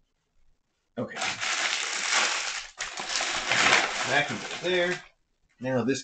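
Plastic packaging crinkles and rustles loudly close by.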